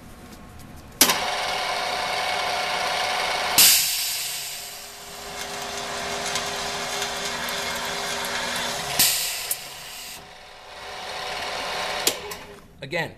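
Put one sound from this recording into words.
A drilling machine's motor whirs steadily as its bits cut into metal.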